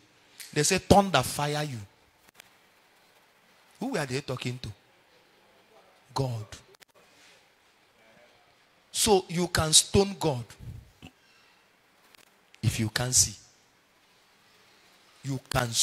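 A man speaks emphatically into a microphone in bursts, with pauses between phrases.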